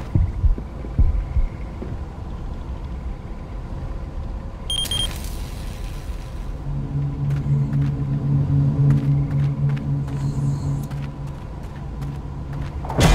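Footsteps run quickly over wooden boards and grass.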